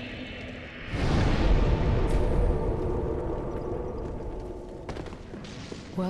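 A second burst of flame roars and fades away.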